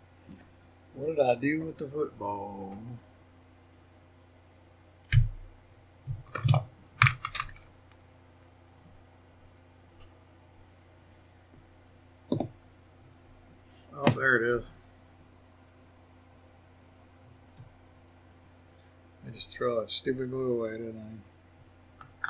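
A middle-aged man speaks calmly in short phrases.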